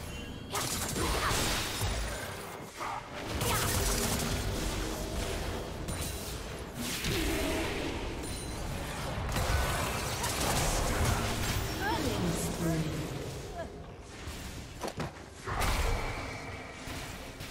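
Magical spell effects whoosh and crackle in bursts.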